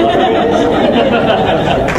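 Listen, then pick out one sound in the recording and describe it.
A man laughs nearby.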